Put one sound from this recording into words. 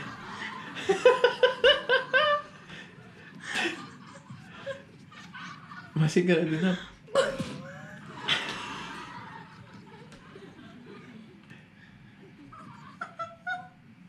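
A man chuckles and talks close by.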